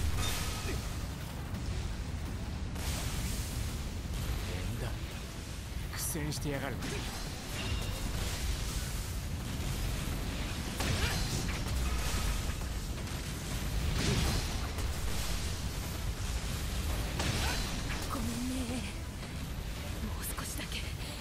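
Air rushes past steadily as a figure swings at speed.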